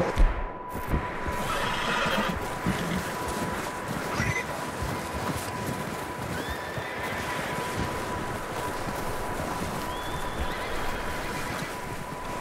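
Footsteps crunch quickly through deep snow.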